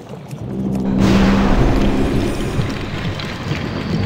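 A magical spell bursts with a bright shimmering whoosh.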